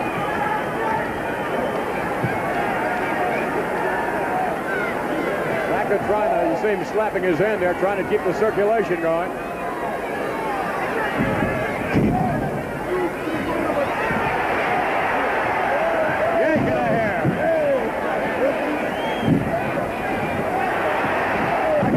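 A large crowd roars and cheers in a big echoing hall.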